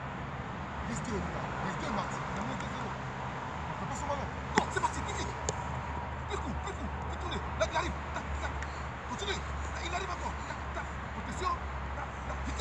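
A ball is tapped across grass with light, repeated kicks.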